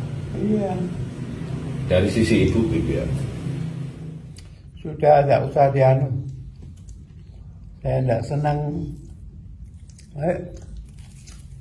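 An elderly man speaks calmly and close by, in short bursts.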